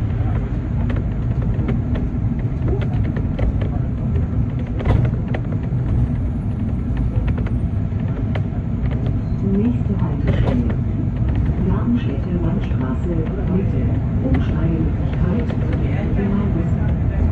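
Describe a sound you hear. A car engine hums steadily while driving through city traffic.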